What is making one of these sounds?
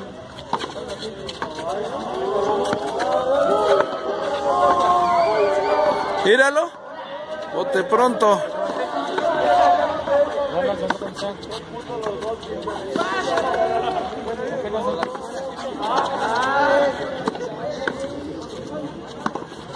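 A hard ball smacks against a wall and echoes.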